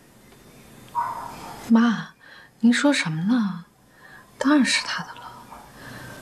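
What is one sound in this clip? A young woman answers calmly, close by.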